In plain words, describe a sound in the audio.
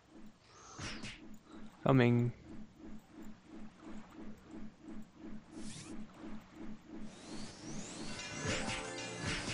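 Quick attack sounds from a video game repeat in a steady rhythm.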